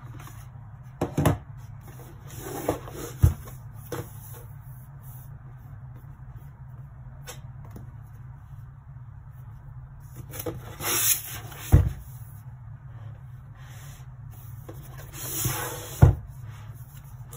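Cardboard packaging rubs and scrapes as it is handled and turned over.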